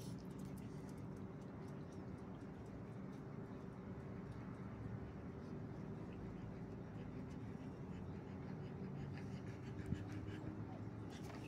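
Dogs' paws patter softly on concrete.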